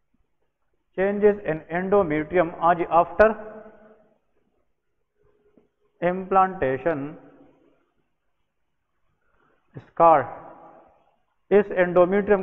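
A man lectures calmly into a close microphone, pausing between phrases.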